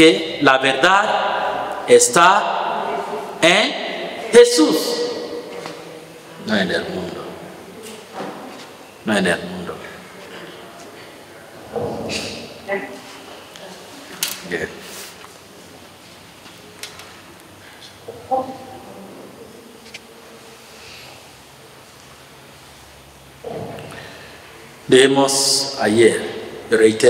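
A man speaks calmly into a microphone in an echoing room, with pauses.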